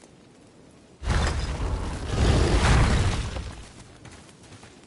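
Heavy wooden double doors grind open with a deep rumble.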